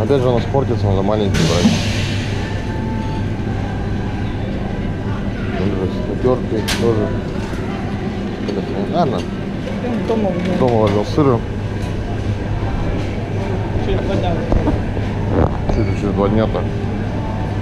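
A young woman talks casually close by.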